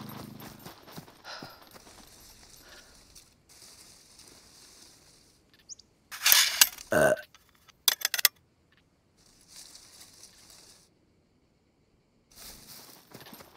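Leafy branches rustle as someone pushes through bushes.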